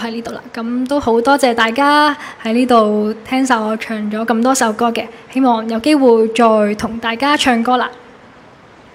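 A young woman sings into a microphone.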